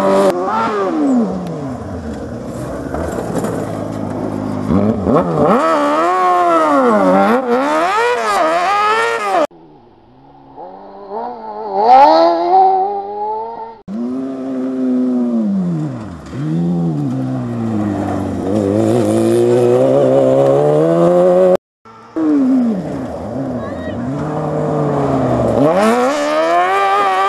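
A rally buggy engine revs hard at full throttle, rising and falling through the gears.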